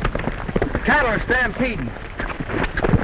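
A horse whinnies shrilly.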